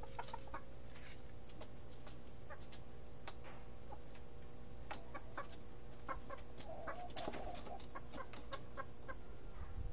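A rooster pecks at food in a bowl with quick taps.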